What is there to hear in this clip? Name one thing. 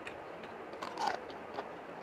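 A man chews food with wet smacking sounds.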